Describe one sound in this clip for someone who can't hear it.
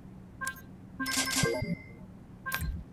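A bright game chime rings.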